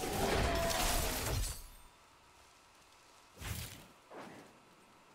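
Game combat sounds clash and burst loudly.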